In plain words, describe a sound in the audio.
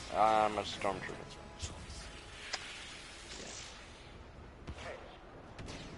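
Laser blasters fire in short zapping bursts.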